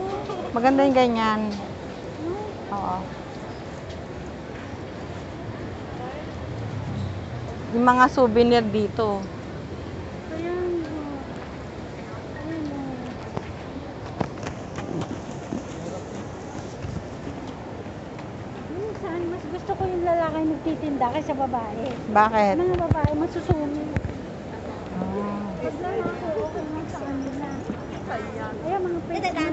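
A crowd murmurs outdoors in a busy street.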